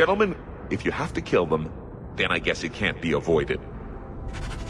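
A man speaks in a deep voice, calmly and close.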